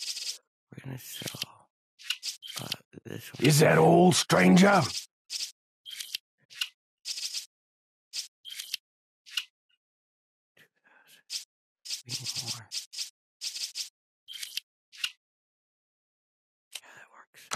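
Short electronic clicks sound as menu items are selected.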